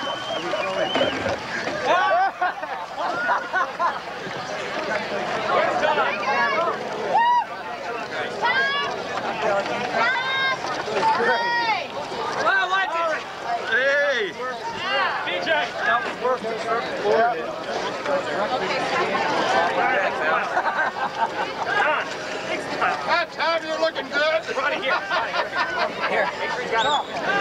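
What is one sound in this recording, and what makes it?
Water splashes around swimmers.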